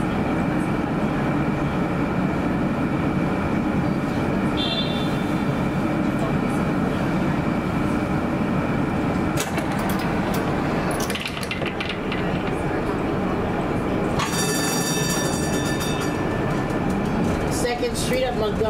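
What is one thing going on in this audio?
City traffic hums and rumbles steadily outdoors.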